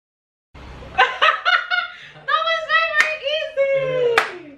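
A young woman speaks and laughs with excitement close by.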